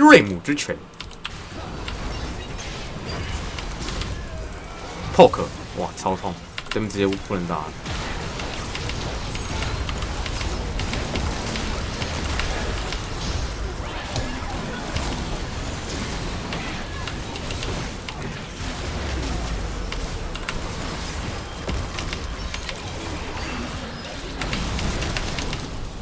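Fighting sound effects from a video game clash and burst steadily.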